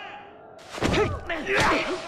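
Swords clash with sharp metallic clangs.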